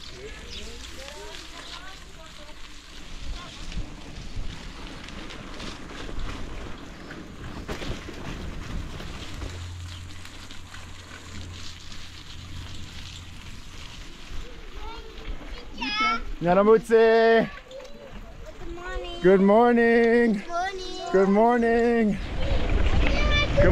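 Mountain bike tyres roll over a muddy dirt track.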